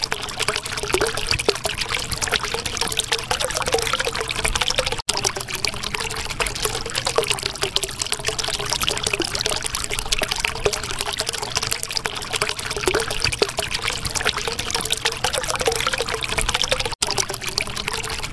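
Water bubbles and gurgles steadily.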